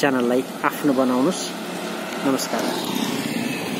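Motorcycle engines hum as they ride past close by.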